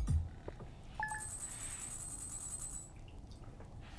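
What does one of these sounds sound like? A soft electronic jingle rings as a tally counts up.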